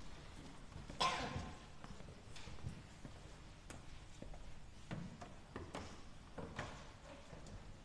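Footsteps walk slowly across a stone floor.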